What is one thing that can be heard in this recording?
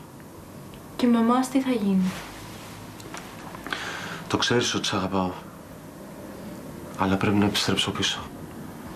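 A woman speaks in a tense, emotional voice close by.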